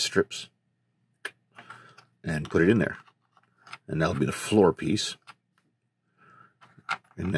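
Small metal parts click and tap together close by.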